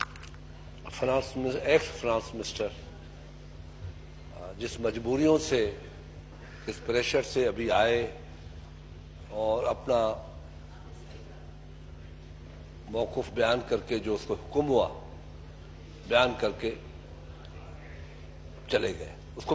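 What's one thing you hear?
An elderly man speaks into a microphone in short, forceful bursts.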